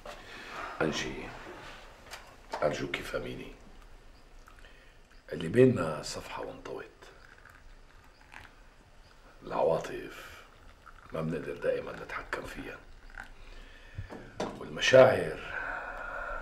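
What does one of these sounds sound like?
Tea pours from a kettle into a glass.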